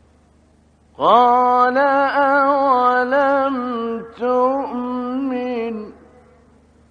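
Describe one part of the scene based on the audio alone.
An adult man chants in a drawn-out, ornamented recitation style.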